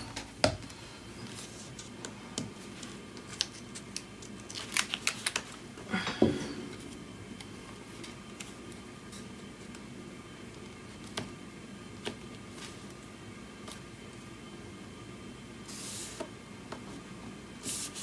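Paper pieces rustle and tap as hands press them onto a card.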